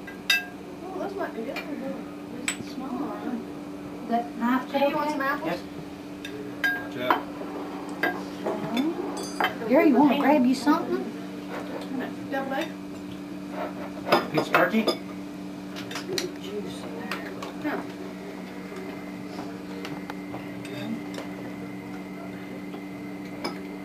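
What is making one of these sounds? Several adults talk and chatter nearby.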